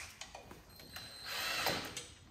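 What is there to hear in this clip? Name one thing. A cordless power tool whirs briefly.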